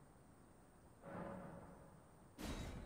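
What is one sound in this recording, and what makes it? A soft game menu sound plays as a choice is confirmed.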